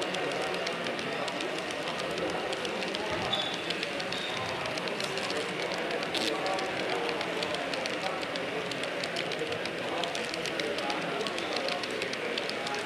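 Model railway hopper cars roll along the track, their wheels clicking over rail joints.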